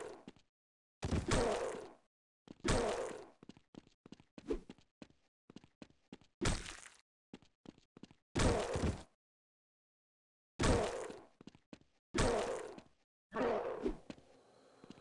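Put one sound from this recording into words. An axe swings and strikes zombies with heavy thuds.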